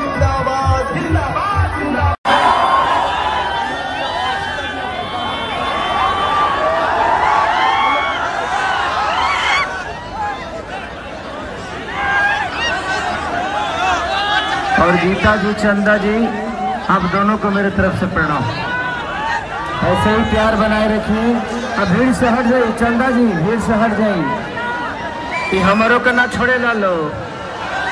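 A large crowd cheers and shouts outdoors.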